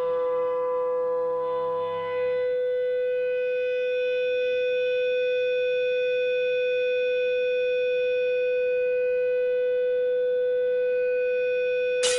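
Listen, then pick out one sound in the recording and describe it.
An electric guitar holds one loud, steady note.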